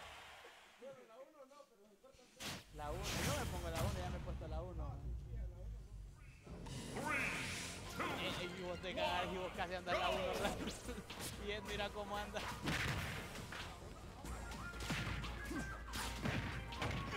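Young men talk with animation, heard through a microphone.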